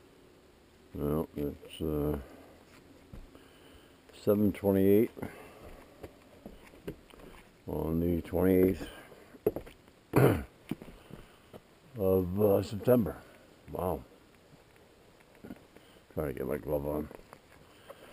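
A man talks calmly to a dog, close to the microphone.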